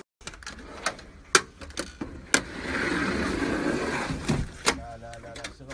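Metal drawers slide and clank shut.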